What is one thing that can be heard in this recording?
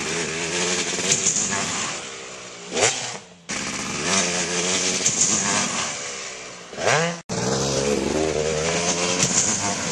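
A dirt bike engine revs hard and roars up a jump.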